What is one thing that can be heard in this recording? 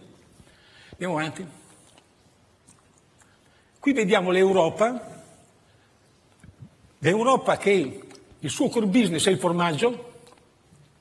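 An elderly man speaks calmly in short bursts through a microphone.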